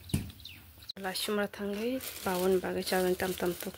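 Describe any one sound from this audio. A plastic bag crinkles as a hand rummages in it.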